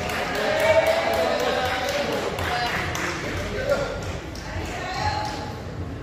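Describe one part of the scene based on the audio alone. Shuttlecocks are struck sharply with rackets in a large echoing hall.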